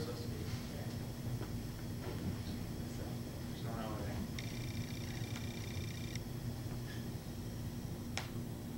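A brass ensemble holds a steady, sustained note.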